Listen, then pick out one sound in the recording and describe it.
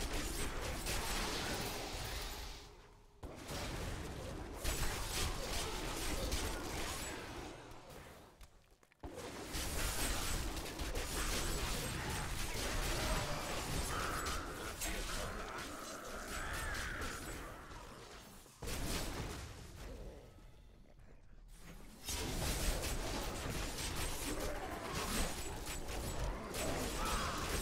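Magic spells blast and crackle in a fast fantasy battle.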